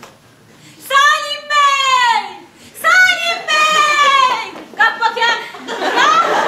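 A woman cries out with emotion in a large echoing hall.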